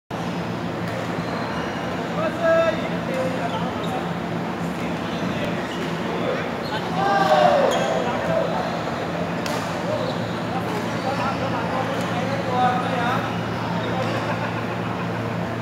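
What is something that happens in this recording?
Rackets strike a shuttlecock with sharp taps in a large echoing hall.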